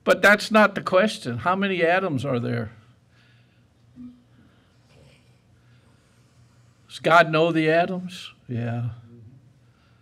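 An elderly man speaks with emphasis through a microphone, pausing between phrases.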